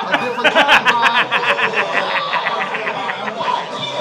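A young man laughs loudly and hysterically close by.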